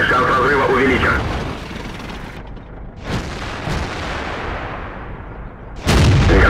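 A diesel tank engine rumbles.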